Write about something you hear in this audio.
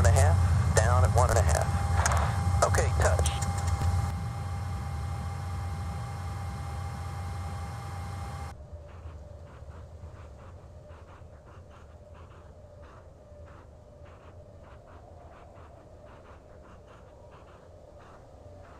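A low rumble of wheels rolling on a runway drones steadily.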